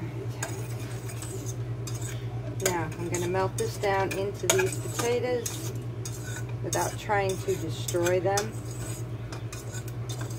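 Metal tongs clink and scrape against a cooking pot.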